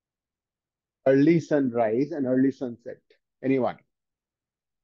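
A man speaks clearly into a clip-on microphone, like a teacher explaining.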